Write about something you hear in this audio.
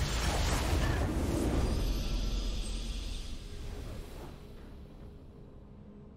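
A victory fanfare from a game plays.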